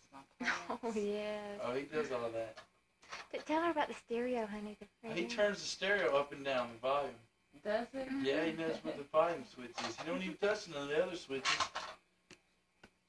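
A man talks to a baby in a lively, sing-song voice close by.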